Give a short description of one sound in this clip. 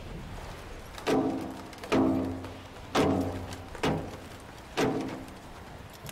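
Loud explosions boom in quick succession.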